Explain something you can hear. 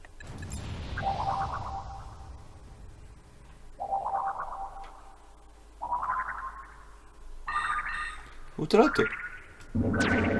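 A sci-fi beam hums with rising electronic tones.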